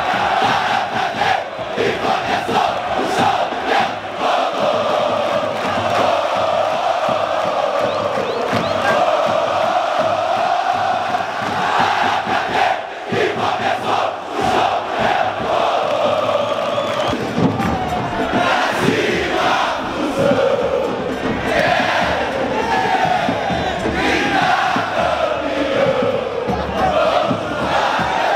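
A large stadium crowd chants and sings loudly in unison.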